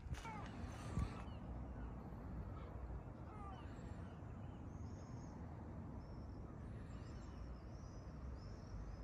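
Light wind rumbles softly outdoors.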